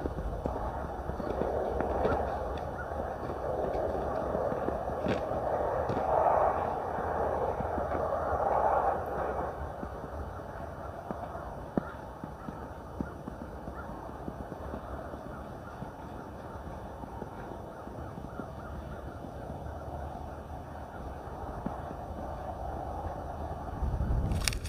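Footsteps crunch on snow outdoors.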